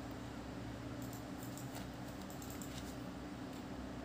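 Computer keys and a mouse click.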